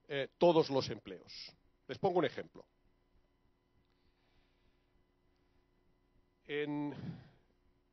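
A middle-aged man speaks into a microphone with a pause between phrases.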